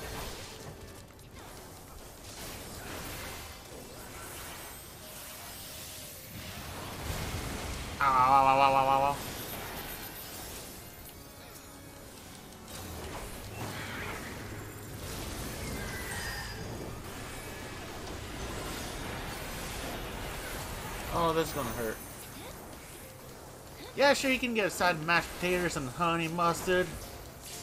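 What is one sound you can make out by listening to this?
Game battle effects clash and boom throughout.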